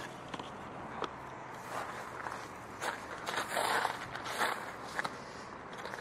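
Footsteps crunch on gravel close by.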